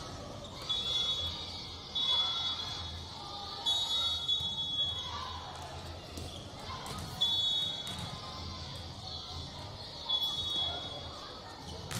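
Sneakers squeak sharply on a hard gym floor, again and again.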